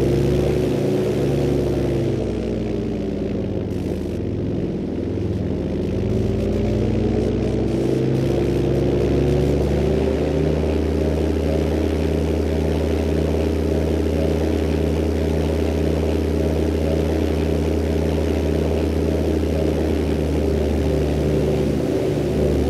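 A small plane's engine drones steadily, dipping in pitch and then holding a steady hum.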